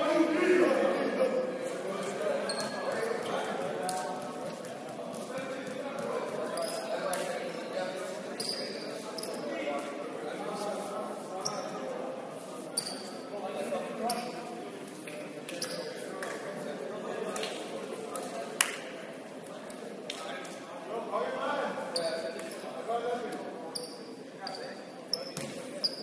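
Young players shout and call out to each other across an echoing hall.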